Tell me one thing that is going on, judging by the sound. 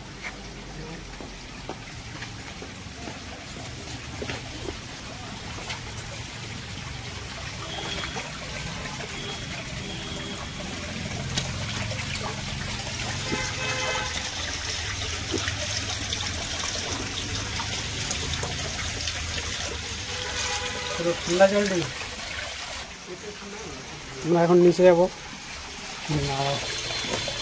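Water trickles over rock.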